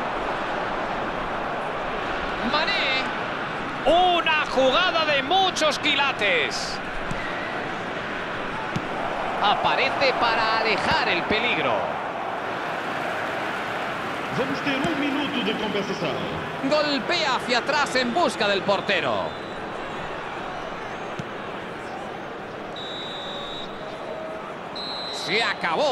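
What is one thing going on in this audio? A large crowd roars and chants steadily in a stadium.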